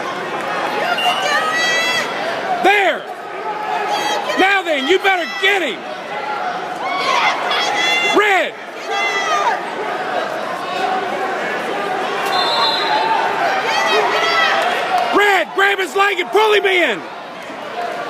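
Spectators nearby shout and cheer loudly.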